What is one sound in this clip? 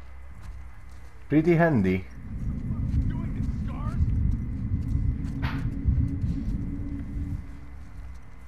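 Footsteps rustle through tall grass.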